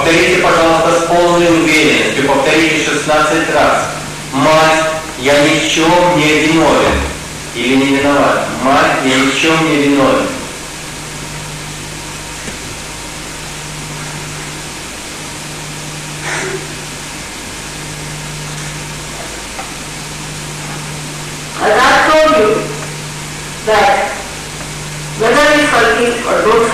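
An elderly woman speaks calmly through a microphone, with pauses.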